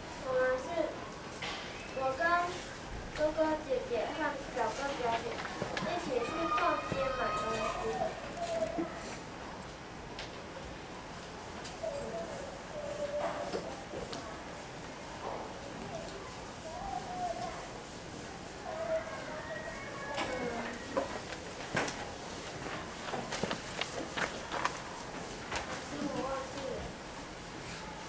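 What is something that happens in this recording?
A young boy speaks slowly with long pauses, as if giving a speech.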